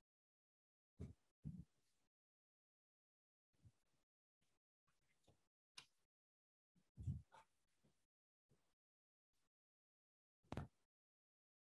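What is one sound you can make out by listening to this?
Small parts knock faintly against a wooden board.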